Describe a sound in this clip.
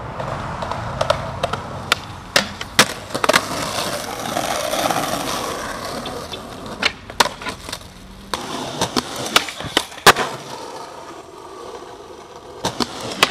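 A skateboard clacks and slaps against concrete.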